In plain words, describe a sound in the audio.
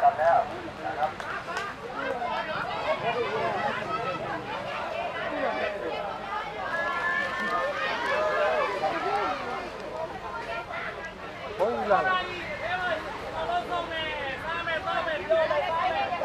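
A crowd of young men and women chatter loudly nearby, outdoors.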